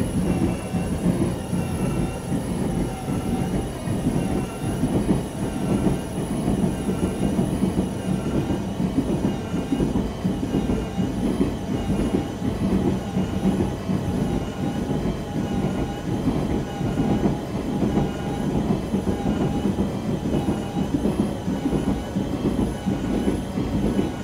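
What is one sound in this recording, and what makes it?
An electric train motor hums with a steady whine.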